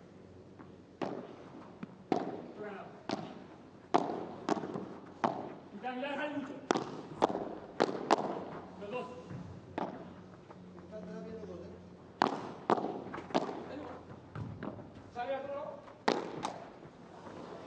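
A padel ball is struck back and forth with sharp pops of the rackets.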